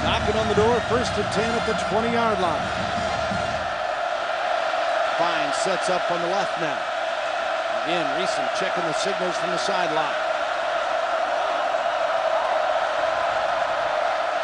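A stadium crowd roars and murmurs steadily in a large open space.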